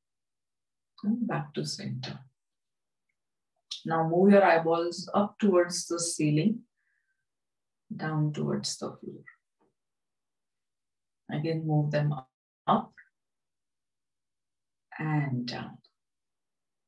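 A woman speaks calmly and slowly in short phrases, close to a microphone.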